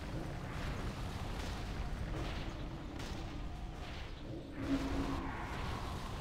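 Magic spells whoosh and crackle during a fantasy battle.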